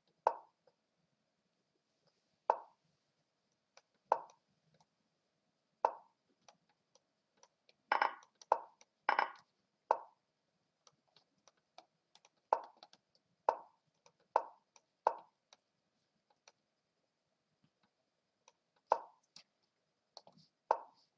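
Short wooden clacks of chess pieces being set down sound again and again.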